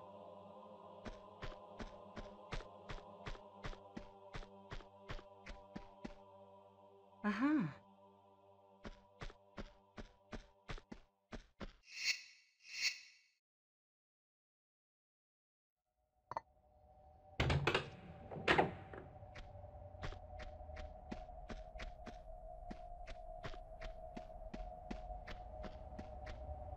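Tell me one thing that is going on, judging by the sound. Quick footsteps slap on a hard stone floor.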